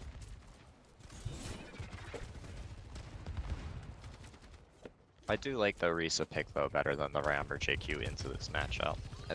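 Game weapons fire and abilities rumble during a battle.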